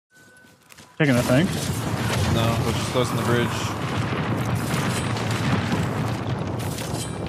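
Rapid gunfire crackles and bangs in a video game.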